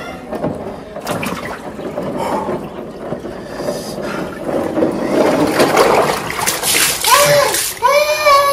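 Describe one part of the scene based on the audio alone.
Ice cubes clatter and water splashes.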